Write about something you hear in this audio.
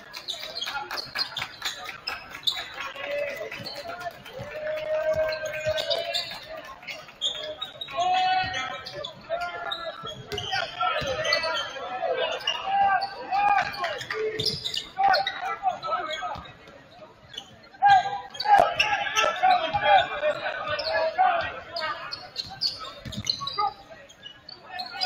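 Spectators cheer and call out in a large echoing gym.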